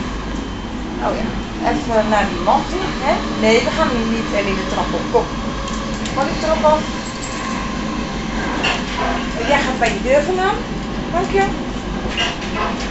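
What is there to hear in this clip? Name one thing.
A man talks nearby in a casual voice.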